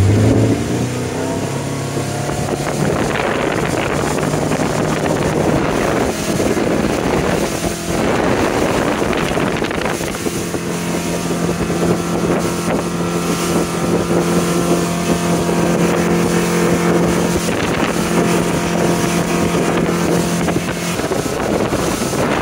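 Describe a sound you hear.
Water rushes and splashes in the boat's wake.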